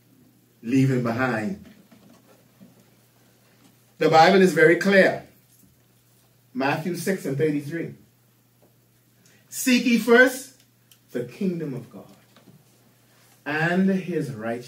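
A middle-aged man speaks calmly in short phrases into a microphone, with pauses between them.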